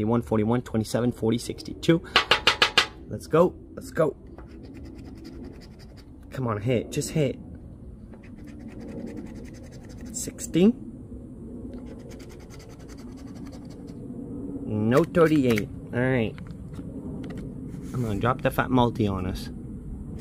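A coin scratches across a lottery ticket.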